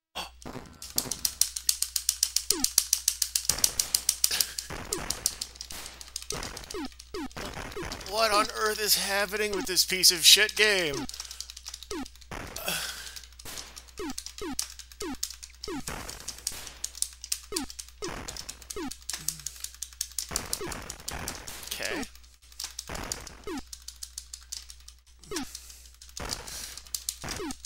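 Rapid laser shots fire in quick bursts.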